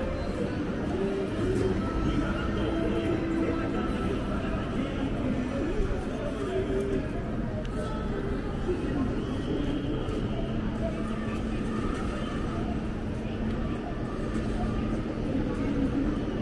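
A busy outdoor street crowd murmurs with many distant voices.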